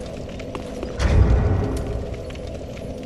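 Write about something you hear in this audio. A deep whoosh of flame bursts up.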